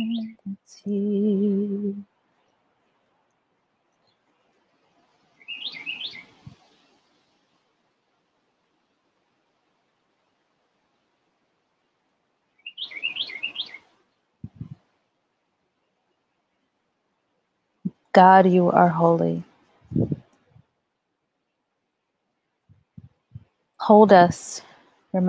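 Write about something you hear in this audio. A woman sings slowly in short phrases close to a microphone, with long pauses between.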